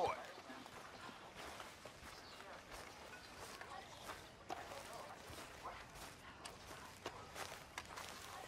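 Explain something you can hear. Footsteps crunch on grass.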